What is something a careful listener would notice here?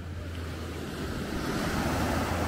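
Small waves wash onto a sandy shore.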